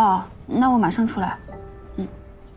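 A young woman speaks quickly into a phone.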